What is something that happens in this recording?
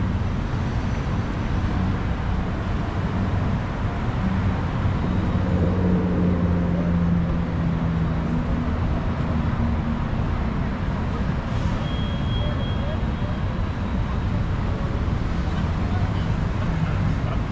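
Car traffic rumbles steadily along a city street outdoors.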